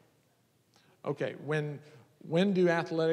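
A man speaks into a microphone, his voice carried through a loudspeaker in a large echoing hall.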